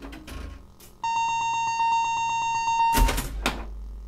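A pinball machine sounds a long steady buzzing tone.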